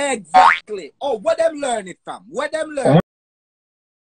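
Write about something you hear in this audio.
A young man shouts over an online call.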